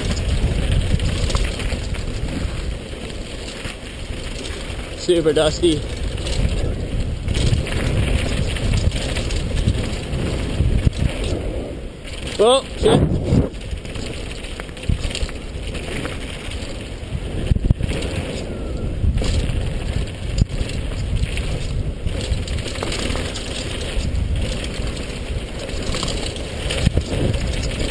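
Wind rushes past, rumbling outdoors.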